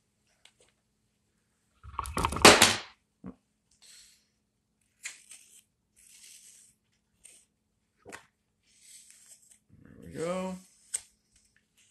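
A knife shaves and scrapes wood in short strokes.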